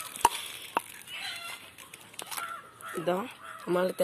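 A coconut cracks open.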